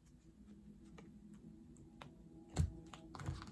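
Cards are laid down with soft taps.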